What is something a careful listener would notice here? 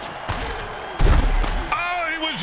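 Armoured players collide with a heavy thud.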